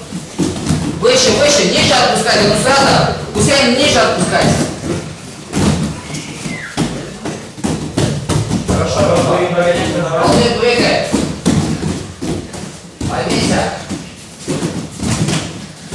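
A man speaks loudly in an echoing hall.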